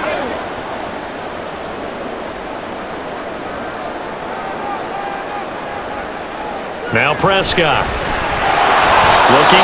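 A large stadium crowd cheers steadily, swelling louder toward the end.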